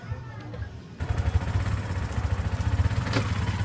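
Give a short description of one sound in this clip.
A small three-wheeler engine putters and rattles.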